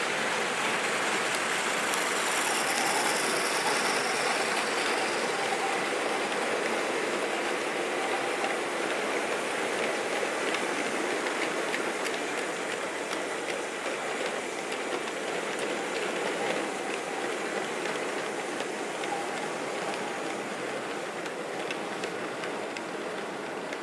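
Small wheels click over rail joints.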